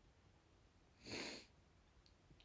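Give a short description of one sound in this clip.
A young woman blows a sharp puff of breath close to a microphone.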